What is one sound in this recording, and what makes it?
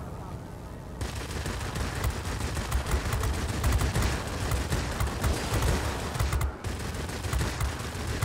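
Machine guns rattle in rapid bursts.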